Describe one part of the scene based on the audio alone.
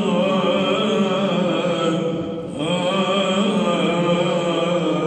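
A group of men chant together in close harmony, close to microphones, in a reverberant hall.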